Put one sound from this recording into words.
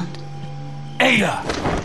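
A man speaks briefly in a low voice.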